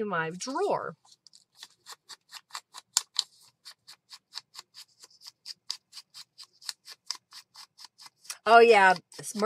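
An ink blending tool dabs rapidly against paper.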